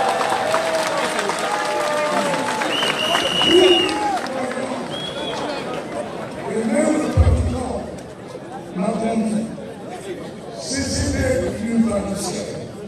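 A man speaks with animation through a microphone and loudspeaker outdoors.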